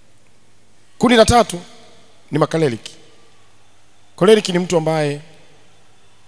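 A young man speaks with animation into a microphone in short bursts, over a loudspeaker.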